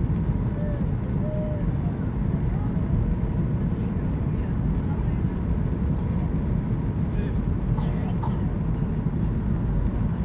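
Jet engines roar steadily with a deep rumble.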